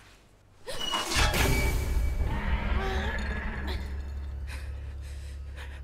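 A glass bottle clatters onto a hard floor.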